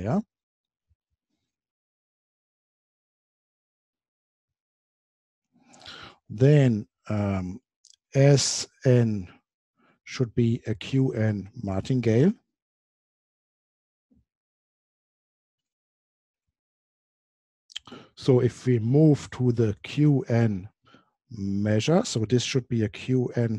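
A man lectures calmly into a close microphone, pausing between phrases.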